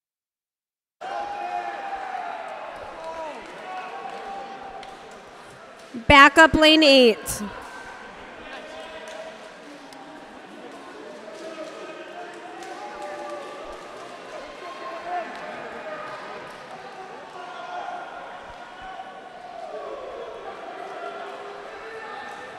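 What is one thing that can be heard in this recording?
A large crowd chatters and cheers in an echoing indoor hall.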